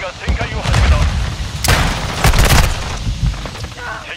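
Automatic gunfire rattles.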